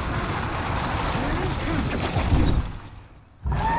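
Fire roars loudly, then dies away.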